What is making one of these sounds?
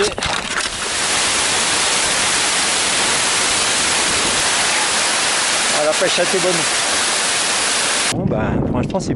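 A waterfall rushes loudly nearby.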